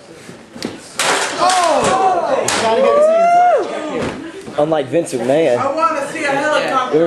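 A group of young people shout and cheer loudly close by.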